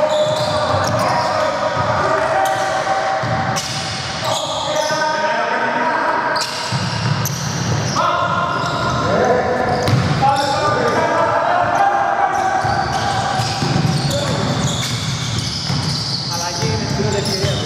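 A basketball bounces on a wooden court in an echoing hall.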